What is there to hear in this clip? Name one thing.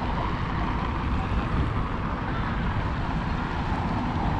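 Cars pass by on a street.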